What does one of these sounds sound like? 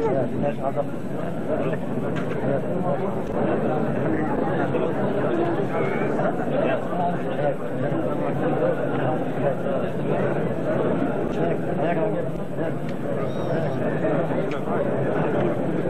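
Men laugh softly.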